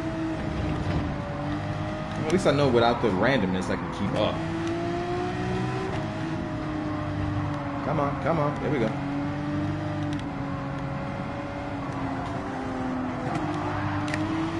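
A racing car engine drones steadily at high revs.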